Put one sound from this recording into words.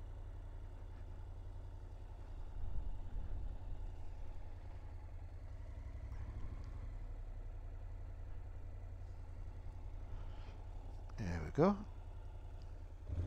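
A motorcycle engine idles and rumbles low and steady.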